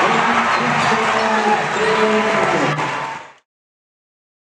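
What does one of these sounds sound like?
A large crowd cheers in an echoing hall.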